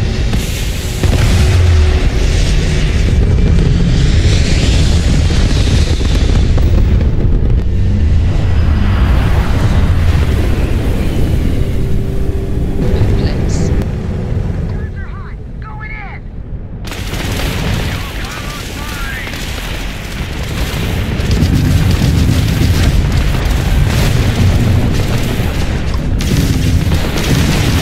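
A spaceship's engines roar loudly and steadily.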